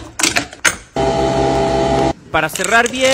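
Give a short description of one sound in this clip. A coffee machine hums as it pours into a mug.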